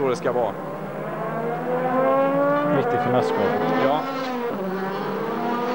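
A racing car engine roars loudly, its pitch climbing and dropping sharply with each gear change.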